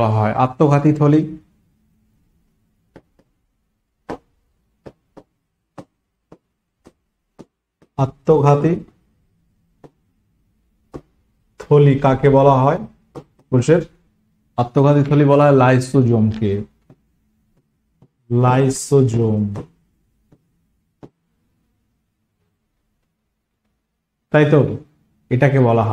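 A young man speaks calmly into a close microphone, in short bursts with pauses.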